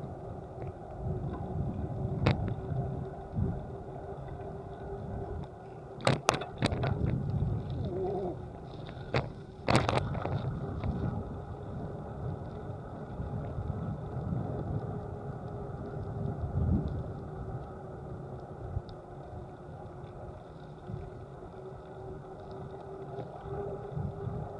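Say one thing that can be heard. Tyres rumble over gravel and bumps.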